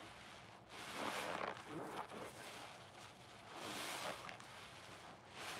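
A wet sponge squelches loudly in bursts.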